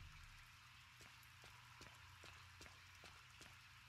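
Footsteps splash on a wet metal floor.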